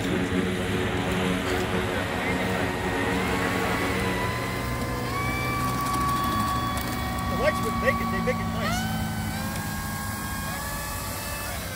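A small electric motor whines steadily, its pitch stepping up at times.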